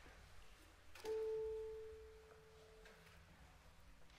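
A single piano note sounds briefly and rings out.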